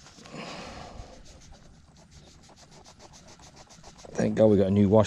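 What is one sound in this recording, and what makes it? A zipper rasps open in quick short bursts.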